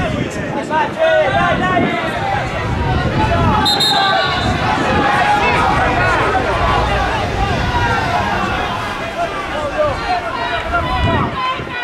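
Several men talk and argue loudly outdoors.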